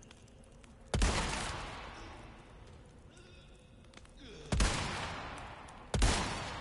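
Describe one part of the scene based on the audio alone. A rifle shot cracks loudly with a ringing echo.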